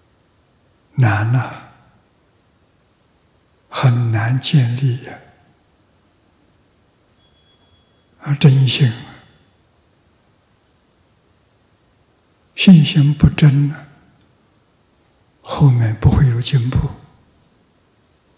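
An elderly man speaks calmly into a microphone in short phrases with long pauses.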